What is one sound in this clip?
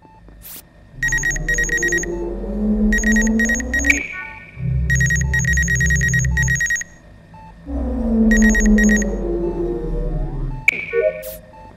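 A scanning machine hums and warbles electronically.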